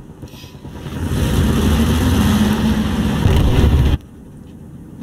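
A tank engine idles.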